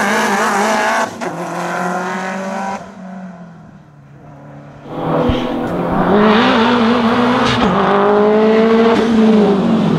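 A second rally car engine roars and revs up as it climbs the bend toward the listener.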